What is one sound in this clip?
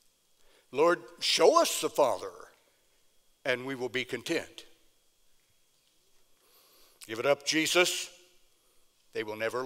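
An elderly man speaks expressively through a microphone in a room with some echo.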